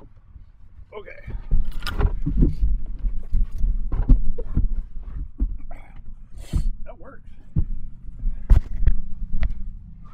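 Clothing rustles and a seat creaks as a man shifts and climbs out.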